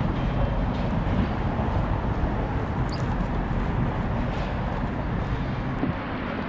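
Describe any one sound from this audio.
Wheels of electric boards roll and rumble over asphalt.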